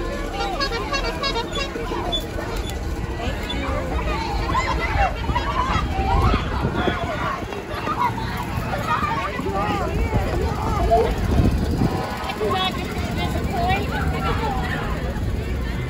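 A crowd of men, women and children chatters and calls out close by, outdoors.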